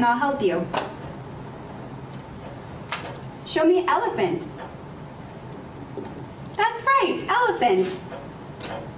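A young woman speaks calmly and clearly nearby.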